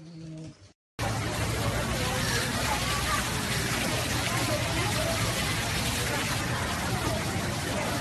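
Water jets splash steadily from a fountain.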